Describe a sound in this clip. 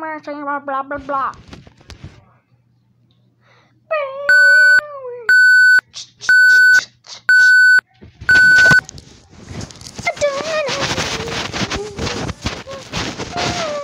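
A young boy talks playfully close by.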